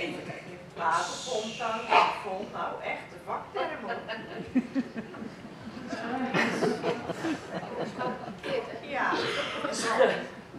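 Actors speak loudly on a stage, heard from the audience in an echoing hall.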